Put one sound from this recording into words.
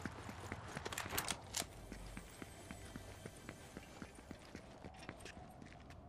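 Footsteps thud up wooden stairs.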